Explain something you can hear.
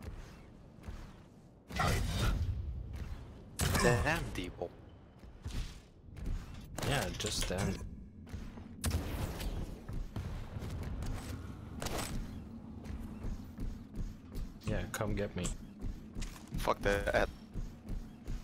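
Quick footsteps thud steadily on a hard floor.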